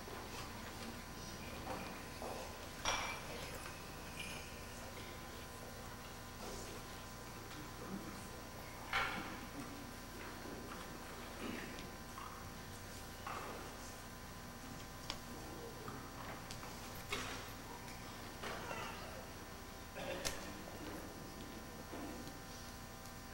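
Audience members murmur quietly in a large echoing hall.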